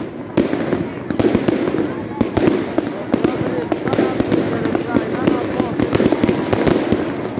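Fireworks bang and crackle in quick, rapid bursts outdoors.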